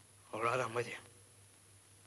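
A young man speaks briefly and firmly nearby.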